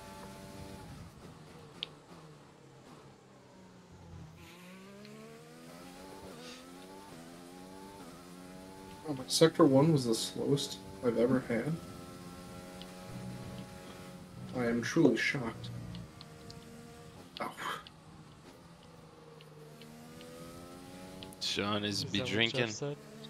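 A racing car engine whines loudly, its pitch rising and falling as it revs up and shifts gears.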